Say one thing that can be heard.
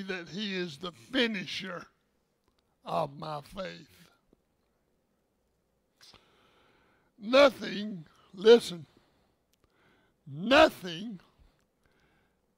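An elderly man speaks calmly through a headset microphone, pausing between phrases.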